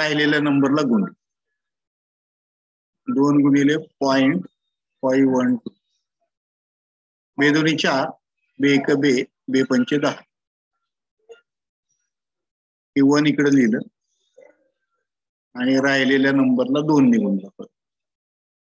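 A man talks calmly and explains, heard through a microphone in an online call.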